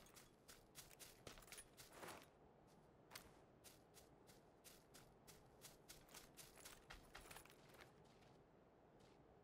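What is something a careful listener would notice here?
Quick footsteps rustle through dry grass.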